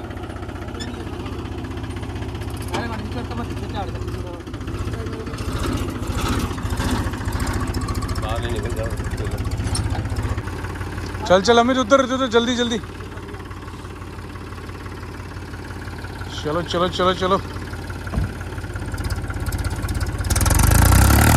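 A tractor engine runs with a low steady rumble.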